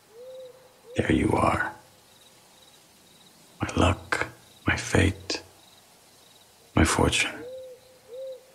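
A man speaks in a low, calm voice nearby.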